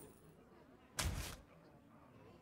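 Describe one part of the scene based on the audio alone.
A magical whoosh plays as a game card is cast.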